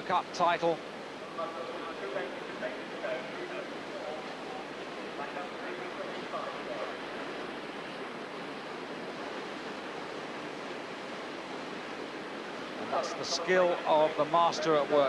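Whitewater rushes and churns steadily.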